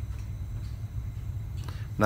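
Pliers click softly against a thin wire.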